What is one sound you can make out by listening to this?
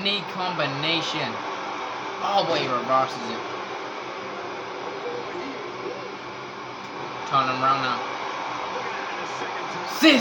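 A crowd roars steadily through a television speaker.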